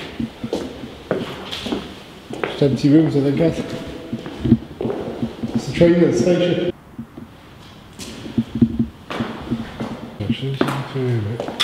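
Footsteps crunch on a gritty floor in an empty, echoing room.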